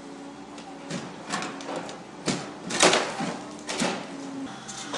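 Timber and brickwork crack and crash down as an excavator tears at a roof.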